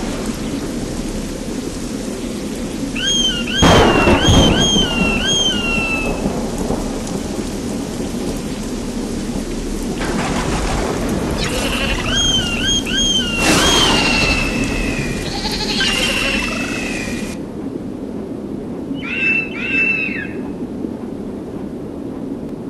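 Large wings flap and whoosh.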